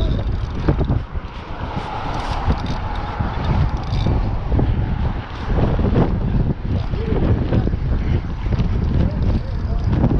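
A fishing reel clicks as it is handled.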